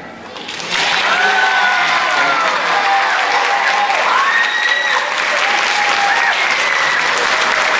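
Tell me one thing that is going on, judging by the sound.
Children cheer and shout.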